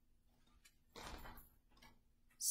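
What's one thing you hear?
A book page rustles as it turns.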